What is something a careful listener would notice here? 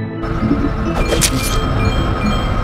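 A sword whooshes through the air with a swift slash.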